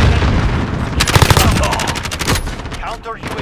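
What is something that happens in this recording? Rifle gunfire bursts in rapid shots.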